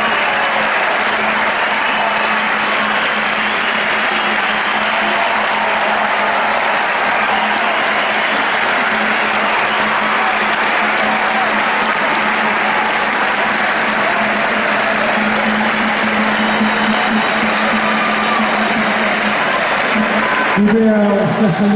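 A large crowd outdoors murmurs and chatters steadily.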